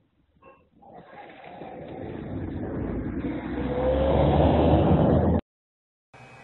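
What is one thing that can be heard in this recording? A car engine roars loudly as a car speeds past close by.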